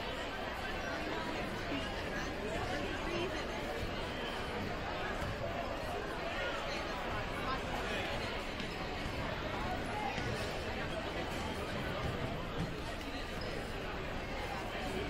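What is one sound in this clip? A crowd of people chatter in a large echoing gym.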